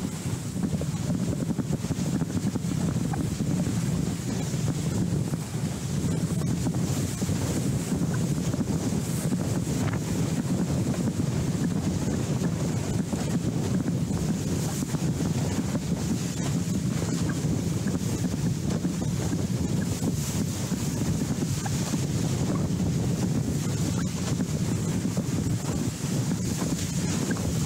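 Strong wind roars and buffets loudly outdoors.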